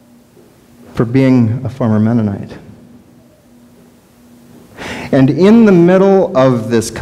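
A middle-aged man speaks with animation through a microphone in an echoing room.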